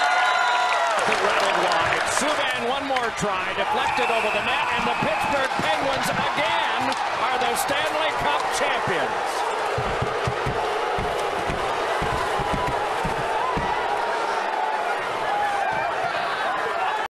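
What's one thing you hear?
An arena crowd roars and cheers.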